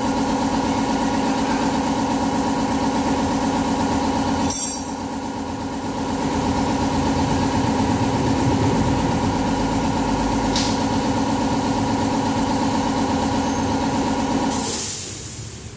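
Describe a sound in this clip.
A motorcycle engine idles steadily.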